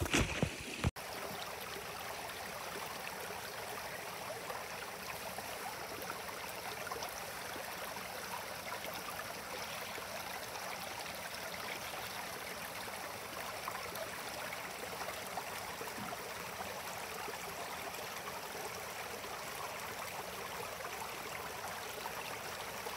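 A stream babbles and splashes over rocks close by.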